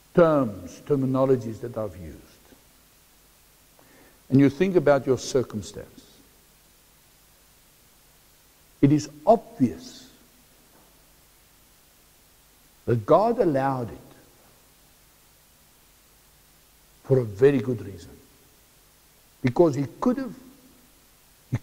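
A middle-aged man speaks slowly to a group, pausing often.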